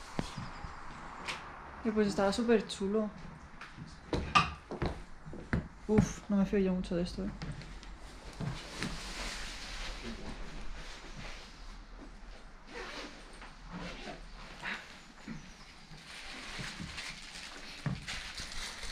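Footsteps crunch over broken debris on a wooden floor.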